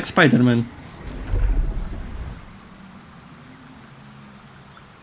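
A magical spell hums and rumbles low, then fades.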